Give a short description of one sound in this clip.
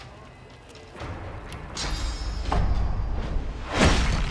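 A blade strikes with a sharp hit.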